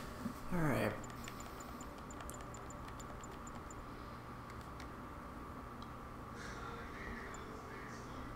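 Soft electronic menu ticks sound as a selection moves.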